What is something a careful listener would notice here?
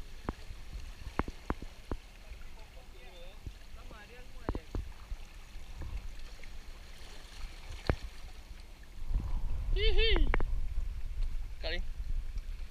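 Waves lap against rocks along the shore.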